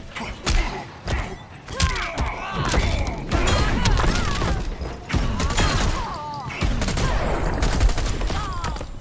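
Heavy punches and kicks land with loud thuds and smacks.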